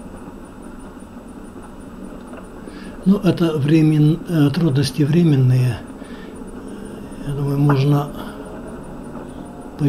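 A car rolls slowly along a road with a low, steady hum.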